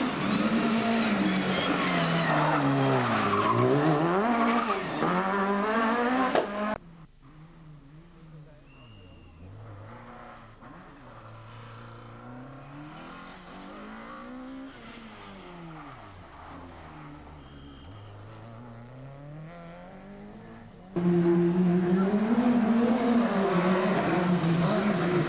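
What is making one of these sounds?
A rally car engine revs hard and roars past close by.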